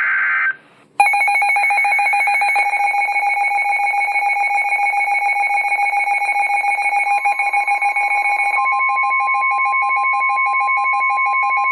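A radio alarm sounds a loud, steady, shrill warning tone.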